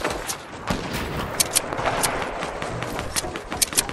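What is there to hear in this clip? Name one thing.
Wooden planks clatter as they are built in quick succession.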